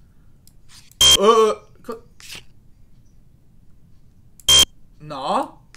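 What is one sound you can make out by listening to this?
A short electronic buzz sounds twice.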